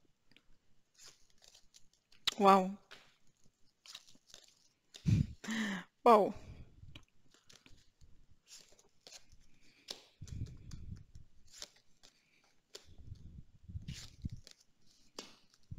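Playing cards are laid down softly on a cloth, with light taps and slides.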